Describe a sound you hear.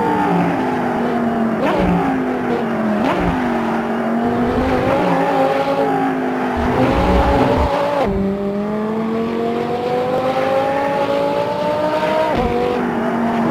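A car engine roars steadily, its pitch climbing and dropping sharply at each gear change.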